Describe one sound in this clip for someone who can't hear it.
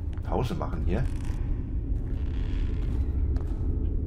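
Footsteps crunch softly on loose rubble and stones.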